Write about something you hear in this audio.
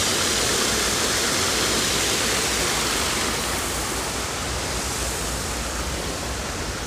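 Water splashes and rushes down a small waterfall close by, then fades.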